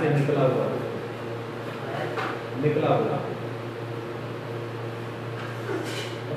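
An elderly man speaks calmly.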